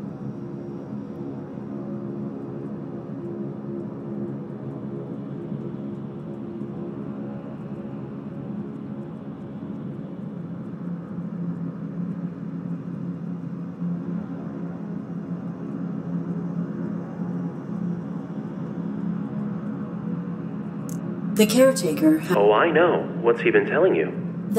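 Low droning game music plays steadily.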